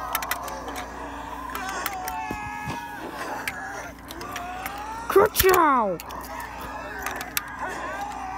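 Toy cars click and knock as a hand moves them.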